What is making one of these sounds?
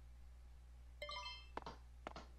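A short electronic notification chime sounds.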